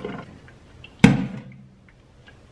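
A colander knocks down onto a metal sink.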